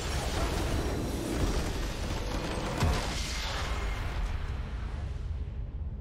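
A triumphant victory fanfare swells.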